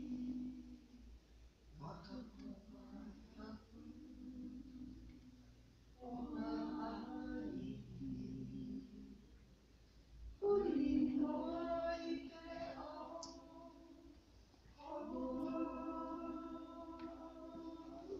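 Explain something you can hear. A group of voices sings together in a large, echoing hall.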